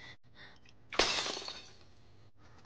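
A small object smashes onto a stone floor.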